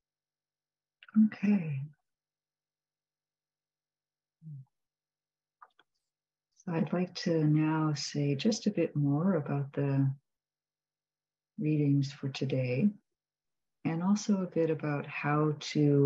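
A middle-aged woman speaks calmly over an online call, in short bursts with pauses.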